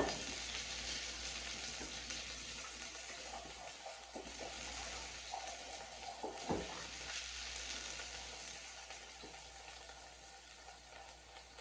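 Dishes clink and knock at a sink.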